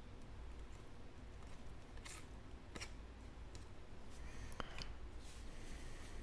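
Trading cards flick and slide against each other in the hands.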